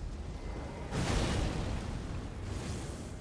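A loud fiery blast whooshes and roars.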